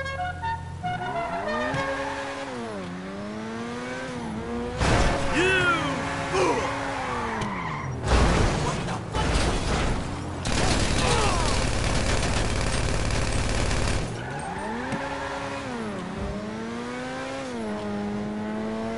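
A car engine revs up and down loudly.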